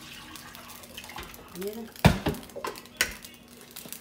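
Water pours into a blender jar.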